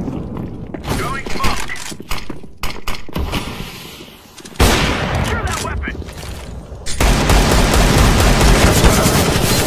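Gunshots crack sharply in quick bursts.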